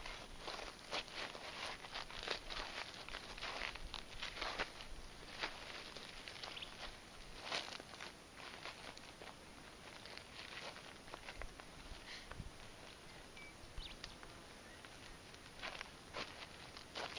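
Feet shuffle and scrape on dry dirt outdoors.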